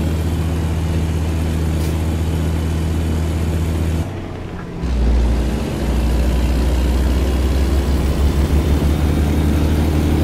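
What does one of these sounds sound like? A truck's diesel engine drones steadily, dropping briefly during a gear change before pulling again.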